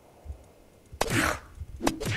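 A blade strikes a body with a sharp, wet thud.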